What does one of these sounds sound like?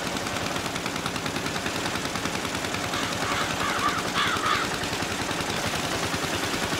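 A small tractor engine putters steadily.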